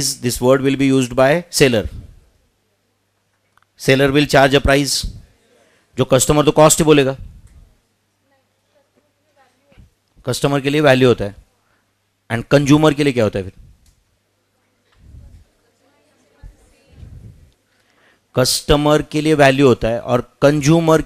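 A man speaks calmly into a headset microphone, in short phrases with pauses.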